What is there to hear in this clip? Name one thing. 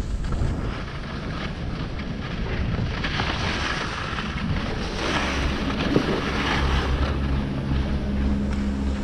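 Skis hiss over packed snow.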